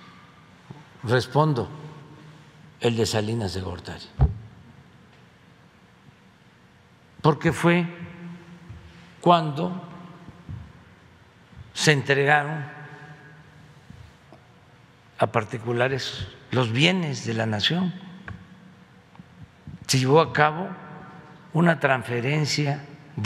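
An elderly man speaks slowly and deliberately into a microphone, with long pauses.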